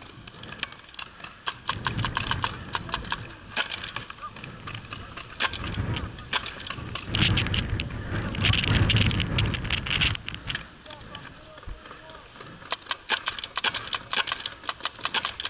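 A paintball marker fires rapid shots close by.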